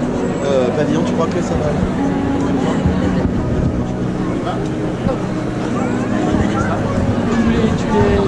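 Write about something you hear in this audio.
A street band plays a lively tune outdoors.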